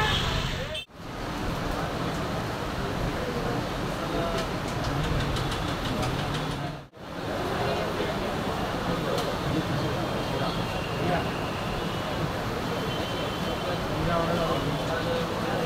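A busy crowd murmurs and chatters in a market hall.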